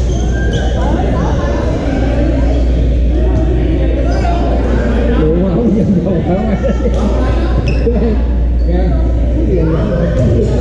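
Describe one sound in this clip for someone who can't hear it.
Many voices chatter and echo in a large hall.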